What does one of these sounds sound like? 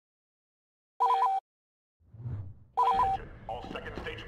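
Electronic menu tones beep.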